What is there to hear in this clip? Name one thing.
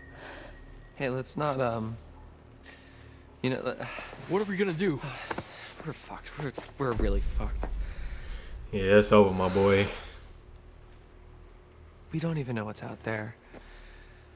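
A young man speaks anxiously and close by.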